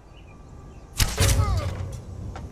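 A bowstring snaps as an arrow is loosed.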